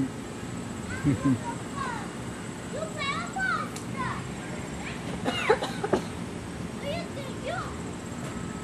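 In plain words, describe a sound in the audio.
A metal swing set squeaks as a child swings.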